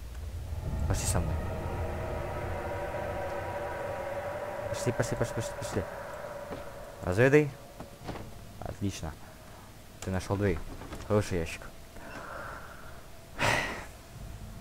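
A wooden crate knocks and thuds against walls and floor.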